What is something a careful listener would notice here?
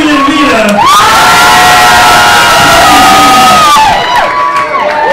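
A crowd cheers and whoops loudly.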